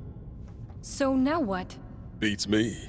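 A young woman asks a question.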